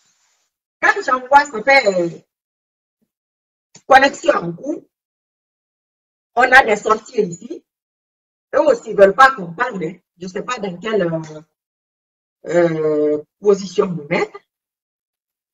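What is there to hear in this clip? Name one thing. A woman speaks calmly and close up, in short bursts with pauses.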